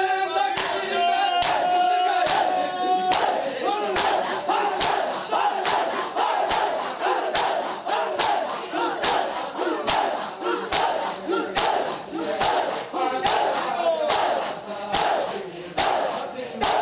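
Many men beat their chests in a steady rhythm of loud slaps.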